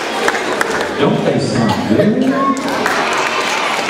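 Young children call out and cheer nearby.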